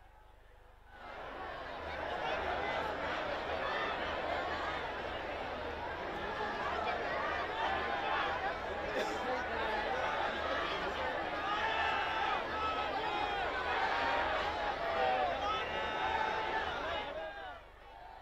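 A large crowd cheers and chants outdoors.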